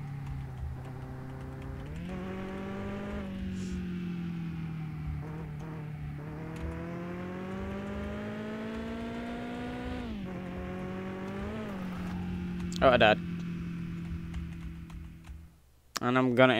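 A car engine hums steadily, its pitch rising and falling as it drives.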